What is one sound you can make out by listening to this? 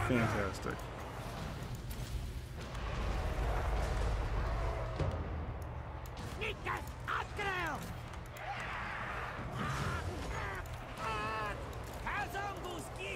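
A large battle clashes and rumbles steadily.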